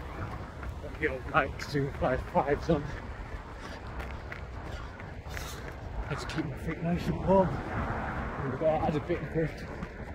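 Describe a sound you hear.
A man talks breathlessly and close up while running.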